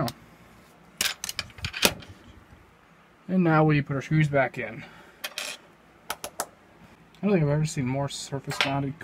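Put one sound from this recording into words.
Small parts of a device click and tap as it is handled.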